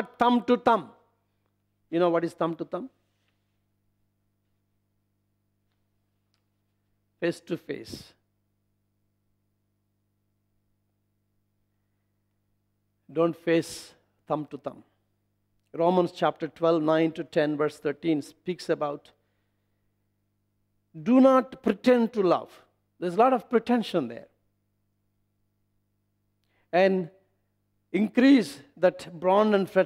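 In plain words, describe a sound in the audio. A middle-aged man speaks calmly into a microphone, pausing often.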